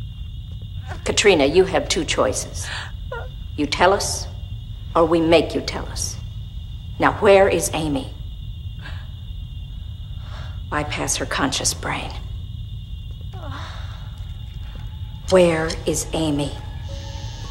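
A woman speaks in short, tense bursts close by.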